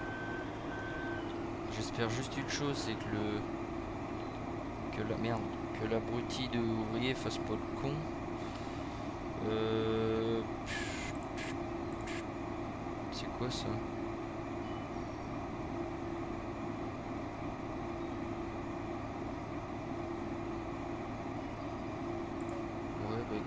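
A combine harvester engine drones steadily.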